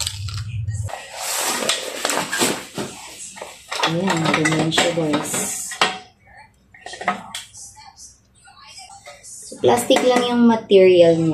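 A plastic tabletop rattles and scrapes as it is handled.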